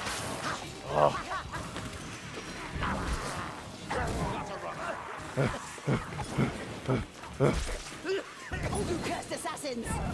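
Flames crackle and roar close by.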